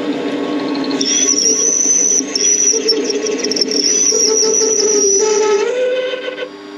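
A cutting tool screeches against spinning metal.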